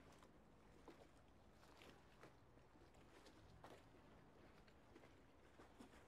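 Footsteps tap on hard stone.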